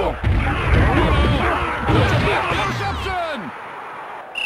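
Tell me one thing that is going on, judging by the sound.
A stadium crowd cheers loudly, then dies down.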